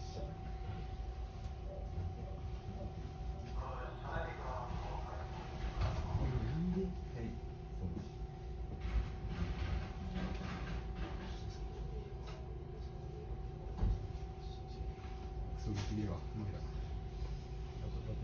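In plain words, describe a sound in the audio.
A train rumbles along the tracks with a steady low hum.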